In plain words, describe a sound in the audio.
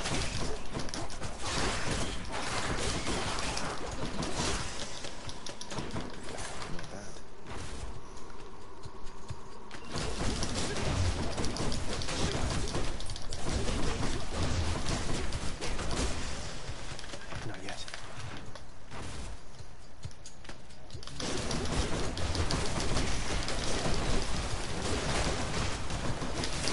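Blades slash and strike again and again in a fast fight.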